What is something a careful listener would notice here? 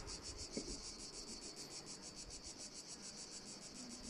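A metal tool scrapes and pries against wooden frames.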